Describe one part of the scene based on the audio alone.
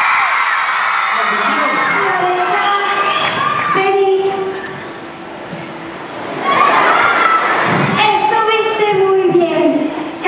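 A young woman sings through loudspeakers in a large hall.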